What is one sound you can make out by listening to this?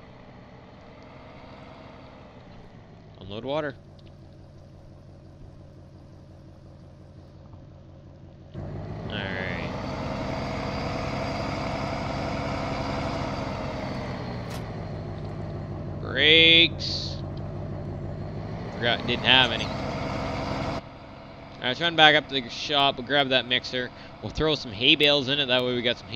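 A truck engine idles with a steady hum, growing louder for a while.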